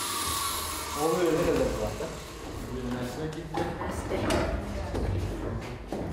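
A man talks with animation across a room.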